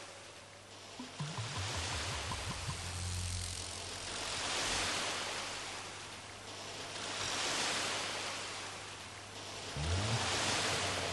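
Wind buffets the microphone in low rumbling gusts.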